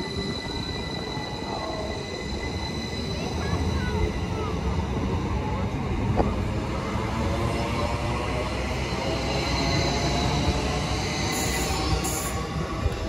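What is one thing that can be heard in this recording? An electric train's motors whine steadily.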